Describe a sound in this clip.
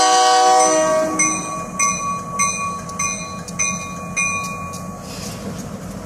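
A crossing bell rings in quick, even strokes.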